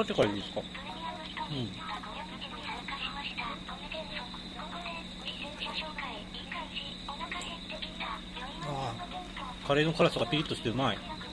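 A young man talks casually close to a microphone.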